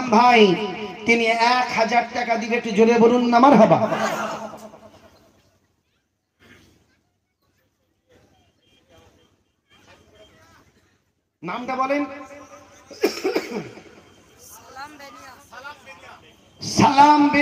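A man preaches forcefully into a microphone, his voice loud and echoing through loudspeakers.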